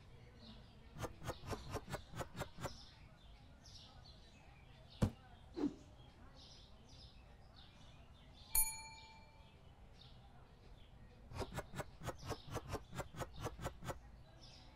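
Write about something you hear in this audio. Items are placed on a shelf with quick, light clicks.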